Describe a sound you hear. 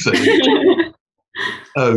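A young woman laughs over an online call.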